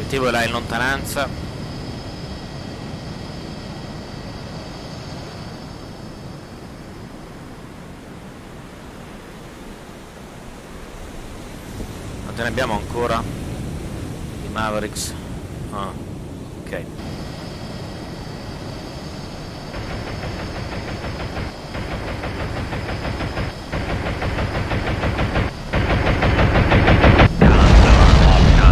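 Waves wash steadily across open sea.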